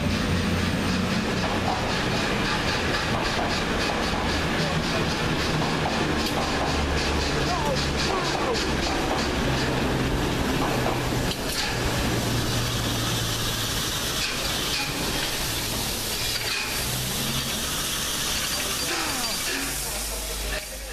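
A steam locomotive chuffs and rumbles loudly past, close by.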